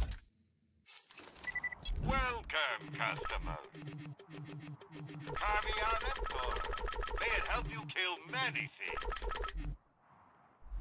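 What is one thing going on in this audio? A game shop plays bright purchase jingles.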